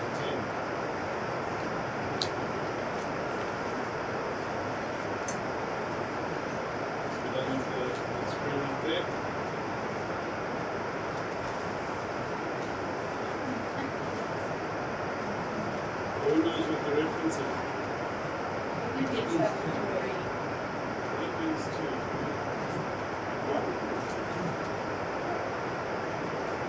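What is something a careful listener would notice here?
A man reads out slowly and calmly at a distance.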